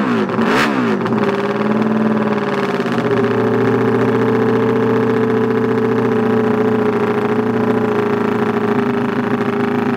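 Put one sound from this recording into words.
A racing motorcycle engine idles with a steady rumble.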